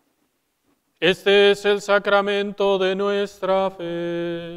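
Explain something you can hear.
A man chants in a sung voice through a microphone in an echoing hall.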